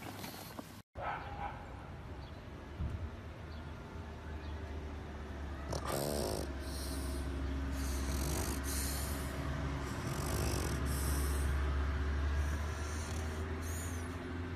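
A dog snores loudly and steadily close by.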